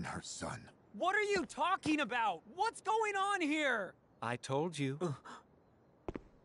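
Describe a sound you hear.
A young man shouts in disbelief.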